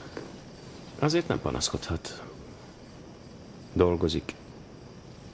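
A man speaks quietly nearby.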